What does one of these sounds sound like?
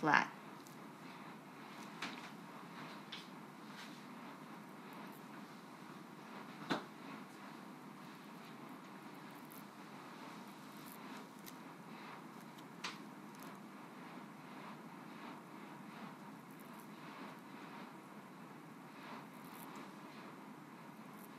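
A fine blade scratches softly against skin.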